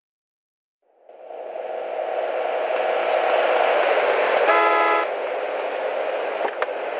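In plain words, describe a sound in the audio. A car engine hums nearby.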